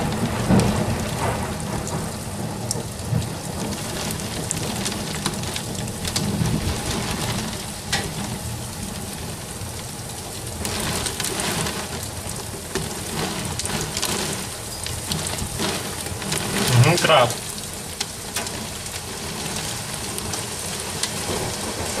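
Heavy rain pours down outdoors in gusty wind.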